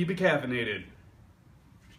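A man speaks briefly and animatedly, close by.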